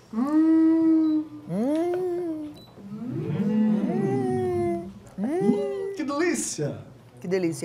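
A woman hums and exclaims with delight, close to a microphone.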